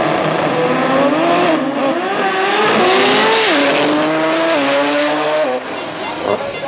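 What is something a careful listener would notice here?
A race car speeds away into the distance, its engine roar rising through gear changes.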